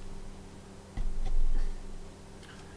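A screwdriver turns a screw with a low grinding scrape.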